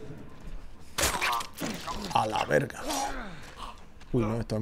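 A man grunts and struggles in a scuffle.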